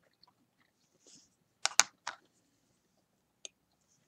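A paintbrush taps and clicks against a small plastic paint pot.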